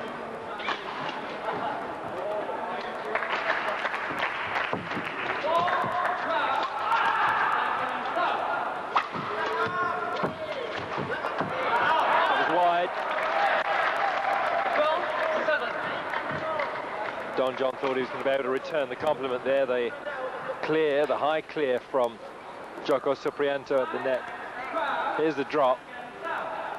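A large crowd in an echoing hall cheers and murmurs.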